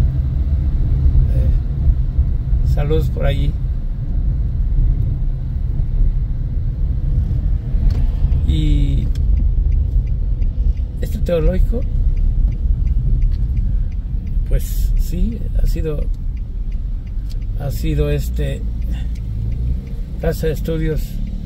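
A car engine hums steadily with a low road rumble while driving.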